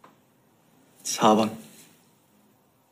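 A young man answers softly, close by.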